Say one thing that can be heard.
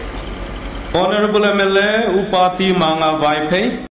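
A middle-aged woman sings into a microphone through loudspeakers.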